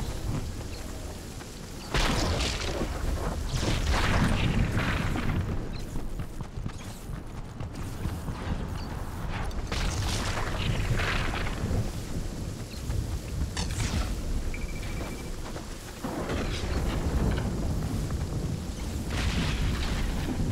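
Quick footsteps patter over grass.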